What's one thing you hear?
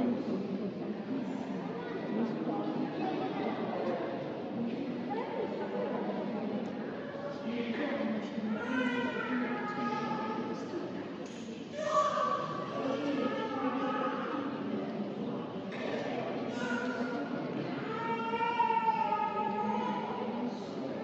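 A crowd of visitors murmurs and chatters in a large echoing hall.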